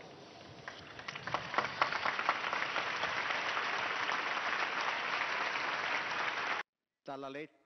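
A large crowd applauds and cheers outdoors.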